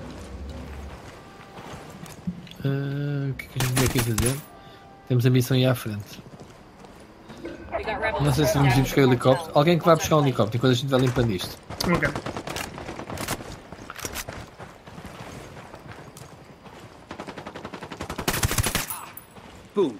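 A silenced rifle fires a few quick shots.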